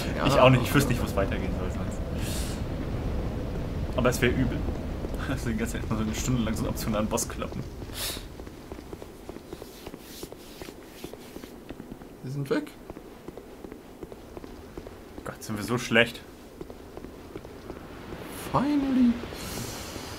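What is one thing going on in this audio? A second young man speaks close to a microphone.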